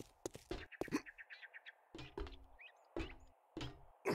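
Footsteps clank on a metal ladder.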